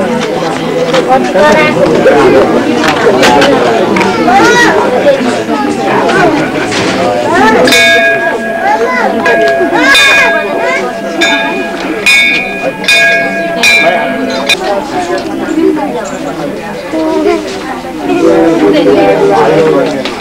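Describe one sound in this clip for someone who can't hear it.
A crowd of men, women and children chatters and murmurs close by.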